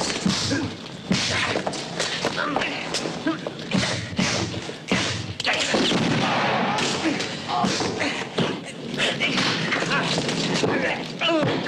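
Blows land with dull thuds.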